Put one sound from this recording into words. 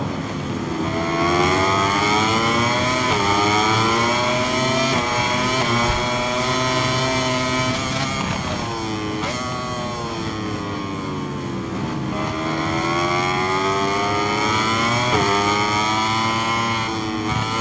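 A racing motorcycle engine screams, rising and falling in pitch as it shifts gears.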